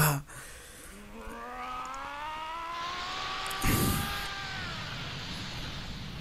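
A magical energy swells with a rising hum.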